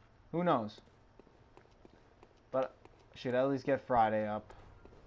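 Footsteps tread slowly on a stone floor.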